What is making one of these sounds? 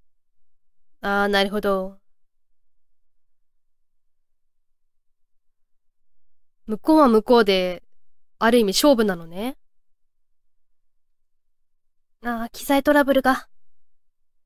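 A young woman speaks calmly into a microphone in short bursts.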